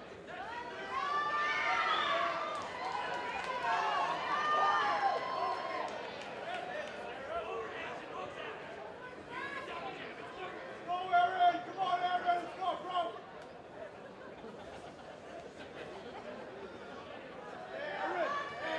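A crowd shouts and cheers in an echoing hall.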